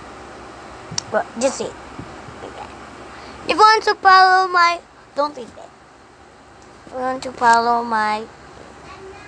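A young boy speaks and sings close to a phone microphone.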